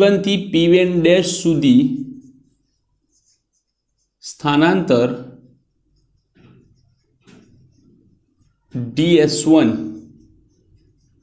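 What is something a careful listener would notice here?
A man speaks calmly and clearly nearby, in short phrases with pauses.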